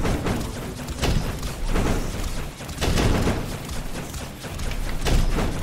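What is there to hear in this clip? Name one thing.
Explosions burst with sharp booms.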